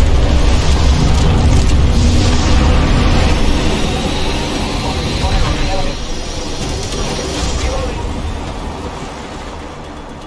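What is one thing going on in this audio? Wind rushes past loudly during a fast fall, then eases off.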